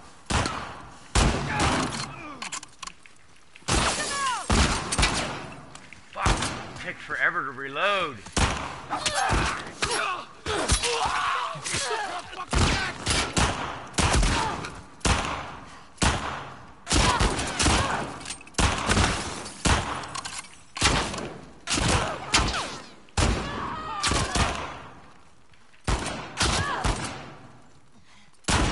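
Gunshots fire in loud bursts with echoing reverberation.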